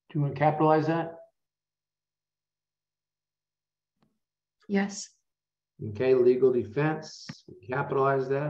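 A man explains calmly, close to a microphone, with pauses.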